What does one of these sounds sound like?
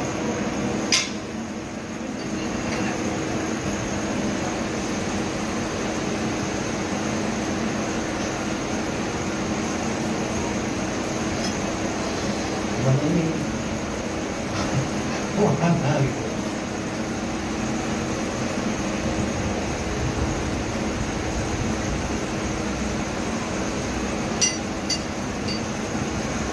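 Metal parts clink as a man works on a pump fitting.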